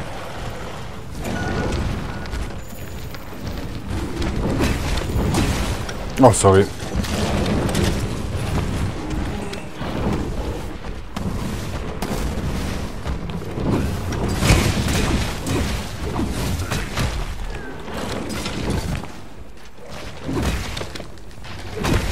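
Heavy footsteps of a large monster thud on the ground.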